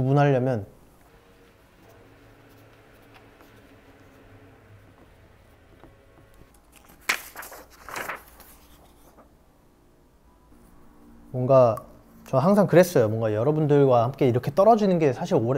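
A young man speaks calmly and close by.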